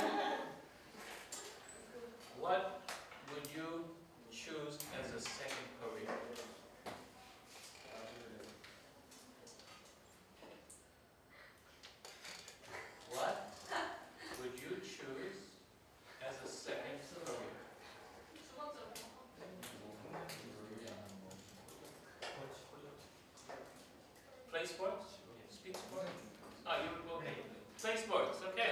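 An elderly man lectures calmly to a room, his voice echoing slightly.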